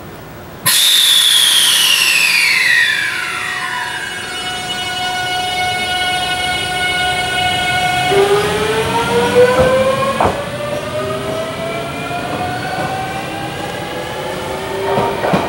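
An electric train's motors whine in rising tones as the train pulls away.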